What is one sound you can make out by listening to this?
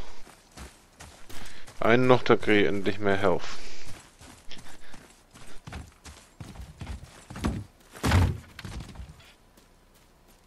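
Heavy footsteps thud on wooden planks and ground.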